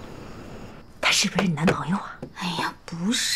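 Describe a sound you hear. A middle-aged woman speaks teasingly, up close.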